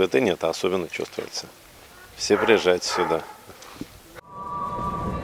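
A middle-aged man speaks calmly into a microphone close by.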